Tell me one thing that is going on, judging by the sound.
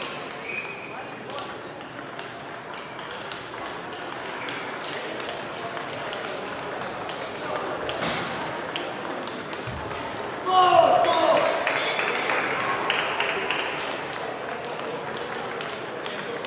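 Table tennis balls click on paddles and tables throughout a large echoing hall.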